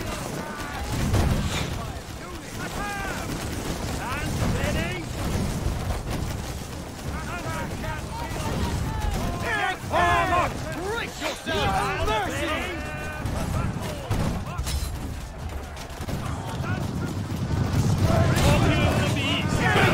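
Weapons clash and armour clanks in a loud battle.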